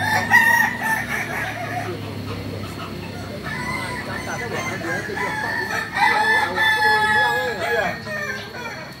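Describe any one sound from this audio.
Roosters crow loudly close by.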